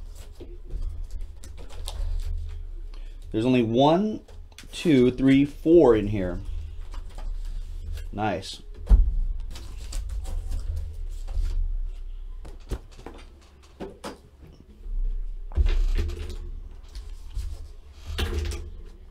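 Packs rustle and slide in a box.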